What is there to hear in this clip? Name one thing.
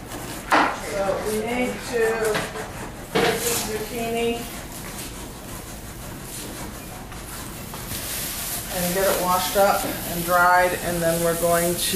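A woman speaks nearby.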